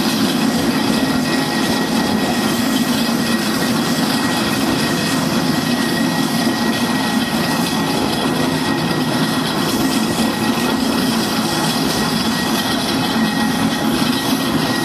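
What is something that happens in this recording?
Steam engines rumble and hiss nearby.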